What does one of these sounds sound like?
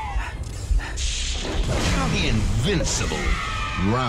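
Energy weapon blasts crackle and hiss close by.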